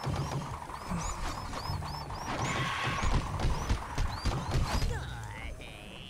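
Blows thud and electric zaps crackle in a fight.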